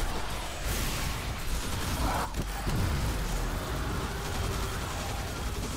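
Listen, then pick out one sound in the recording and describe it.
A man talks into a headset microphone with animation.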